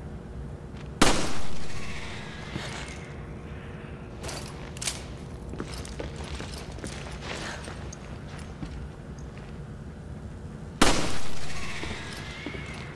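A pistol fires twice, each bang ringing out with a loud echo.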